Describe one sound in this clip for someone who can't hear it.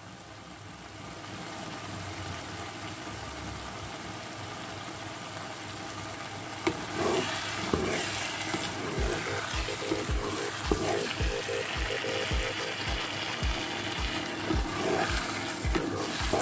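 A thick sauce bubbles and sizzles in a pan.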